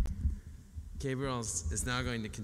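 A man sings or chants into a microphone.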